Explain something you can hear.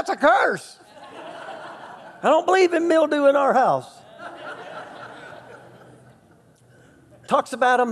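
A middle-aged man speaks expressively through a microphone in a large echoing hall.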